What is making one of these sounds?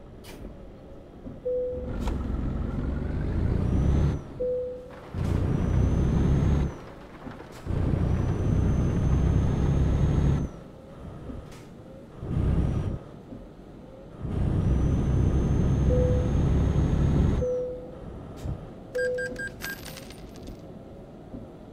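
A truck engine rumbles and revs up and down in bursts.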